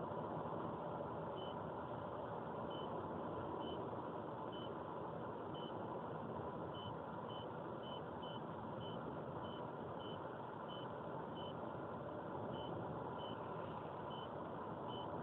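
A car's engine hums steadily and its tyres roar on the road from inside the car.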